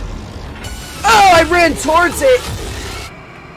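A young man screams in fright.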